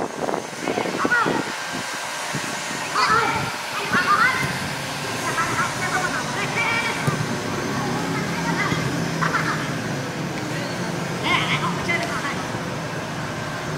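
Young men shout to each other across an open playing field.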